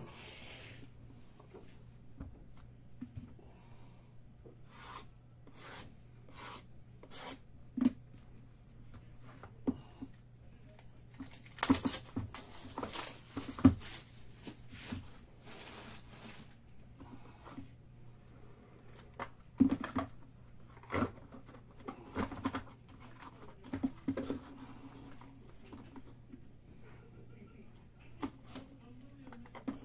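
Cardboard boxes knock and rustle as they are handled.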